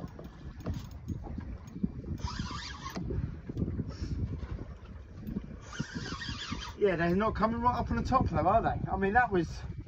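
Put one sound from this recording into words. A fishing reel is cranked.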